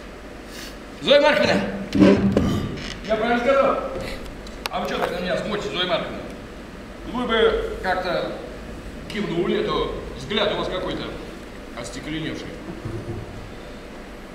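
A man speaks with animation in a large room.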